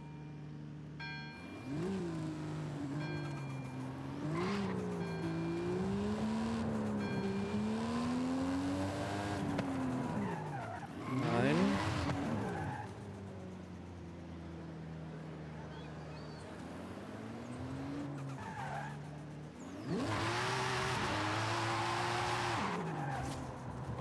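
A car engine revs up and down as the car accelerates and brakes.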